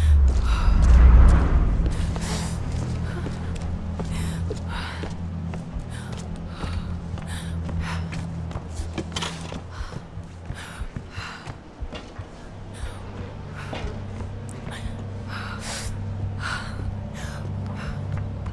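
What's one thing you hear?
Footsteps thud quickly on stone and wooden boards.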